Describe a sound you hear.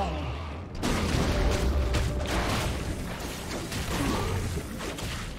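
Magic blasts crackle and whoosh in a game fight.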